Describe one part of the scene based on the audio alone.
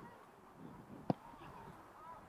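A goalkeeper kicks a soccer ball with a sharp thud.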